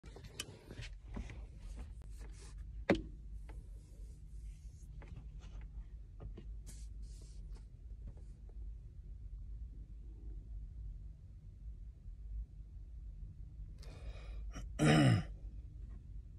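A man speaks quietly and briefly, close by.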